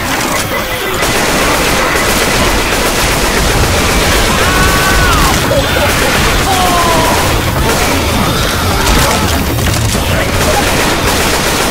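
Rapid automatic gunfire rattles loudly.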